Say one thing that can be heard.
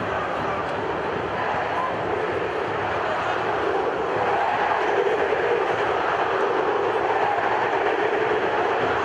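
A large stadium crowd roars and chants steadily in the open air.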